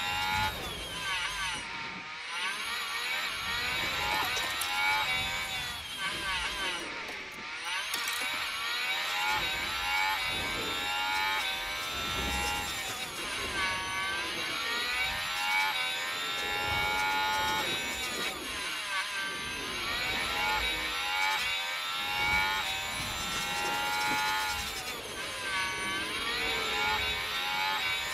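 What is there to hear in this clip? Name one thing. A racing car engine screams at high revs, rising and falling as the gears shift.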